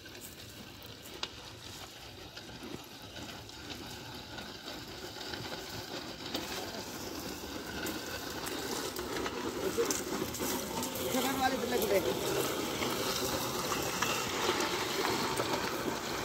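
Dry crop stalks crackle and rustle as a plough is dragged through them.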